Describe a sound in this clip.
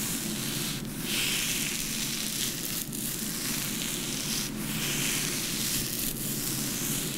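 Fingers rub and rustle through hair close by.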